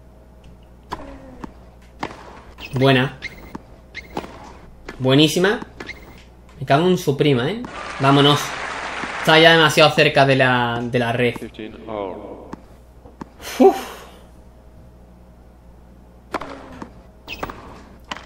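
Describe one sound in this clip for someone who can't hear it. A tennis ball is struck sharply with a racket, back and forth.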